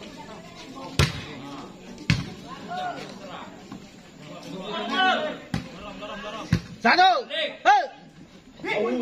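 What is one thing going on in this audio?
A volleyball is struck with a sharp slap.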